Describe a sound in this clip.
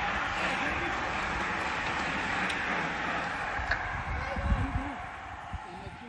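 Bicycle wheels whir and hiss on asphalt as riders pass close by.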